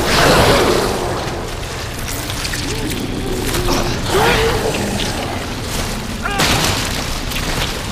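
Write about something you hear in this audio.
A man grunts and groans as he struggles.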